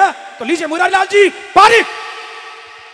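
A man sings loudly through a microphone with a strong echo.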